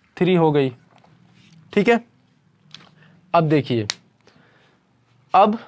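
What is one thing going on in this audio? A young man speaks in short bursts, explaining clearly and close by.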